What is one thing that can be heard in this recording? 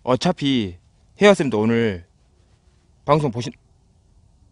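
A man speaks quietly and closely into a microphone.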